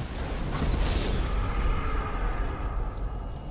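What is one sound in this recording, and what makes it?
Flames crackle and roar over a burning car.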